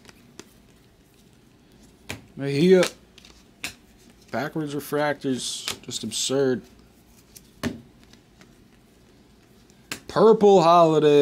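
Trading cards click and rustle as they are handled.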